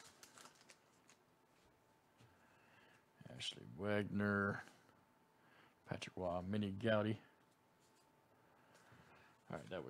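Trading cards rustle and slide against each other.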